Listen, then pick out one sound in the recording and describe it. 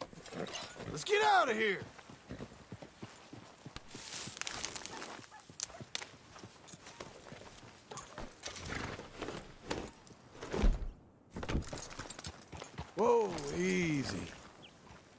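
A horse whinnies loudly.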